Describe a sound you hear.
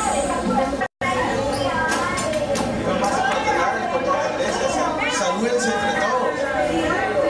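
A crowd of people chatters and calls out.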